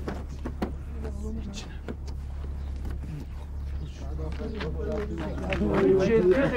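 Several men talk among themselves.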